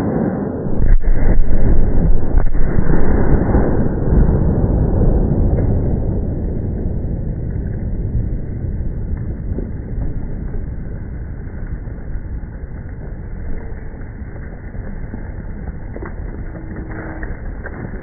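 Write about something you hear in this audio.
Dirt and debris rumble and patter down after an explosion, slowly fading.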